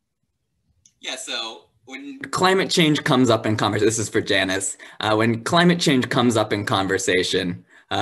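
A young man speaks with animation over an online call.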